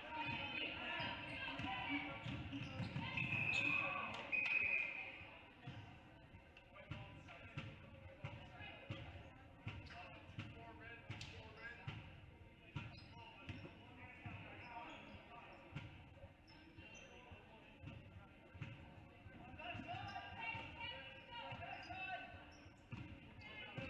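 A basketball bounces on a hardwood floor, echoing in a large gym.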